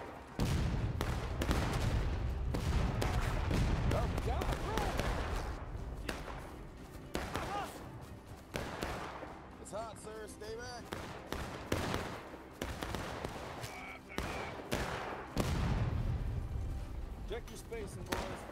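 Cannon fire booms and rumbles in the distance.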